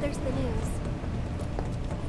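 Quick footsteps patter across a metal floor.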